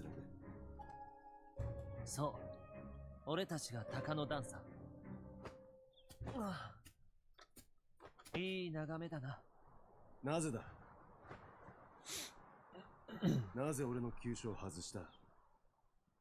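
A young man speaks calmly, heard close.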